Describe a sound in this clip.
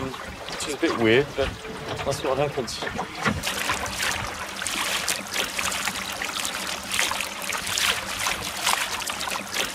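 Water laps and splashes against the side of a small boat.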